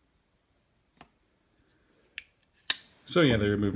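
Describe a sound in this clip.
A folding knife clicks open and shut.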